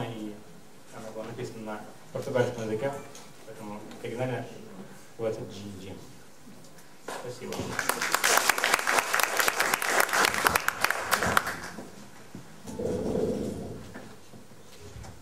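A man speaks calmly through a microphone and loudspeakers in a large hall.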